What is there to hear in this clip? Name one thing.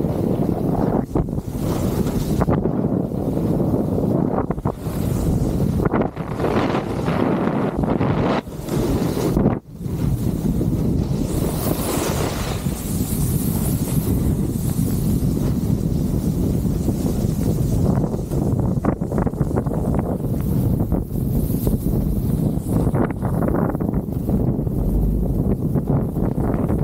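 Wind rushes loudly past, buffeting and roaring.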